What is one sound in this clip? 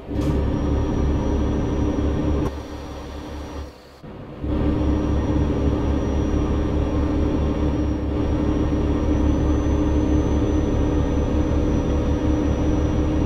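A diesel truck engine drones while cruising on a highway.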